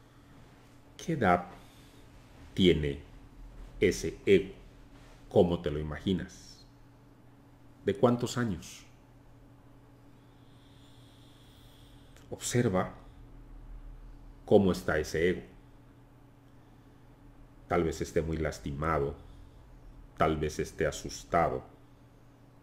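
An elderly man speaks calmly in short bursts with pauses, heard through a microphone on an online call.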